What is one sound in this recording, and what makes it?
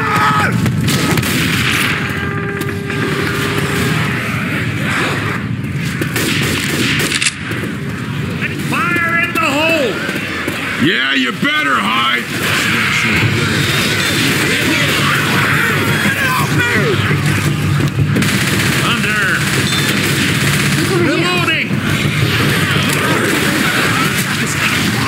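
Shotgun blasts fire in quick bursts.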